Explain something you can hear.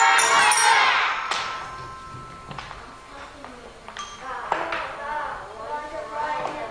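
Children strike xylophones, with notes ringing out in a large echoing hall.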